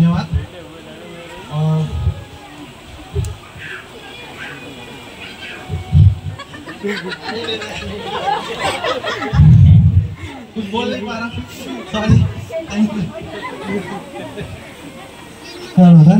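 A man speaks with animation into a microphone over loudspeakers.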